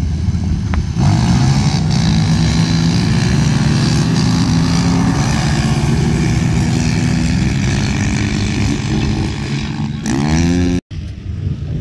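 Off-road vehicle engines roar and rev as they drive across sand.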